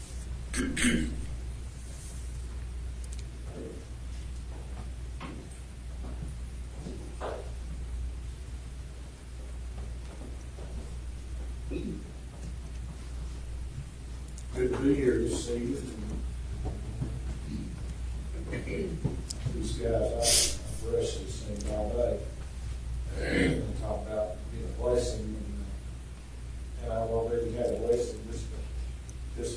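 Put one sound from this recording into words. A man speaks calmly, with pauses, in a room with a slight echo.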